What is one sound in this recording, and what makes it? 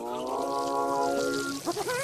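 Water spurts up out of the ground.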